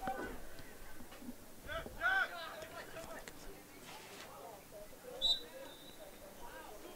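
Young men shout across an outdoor field.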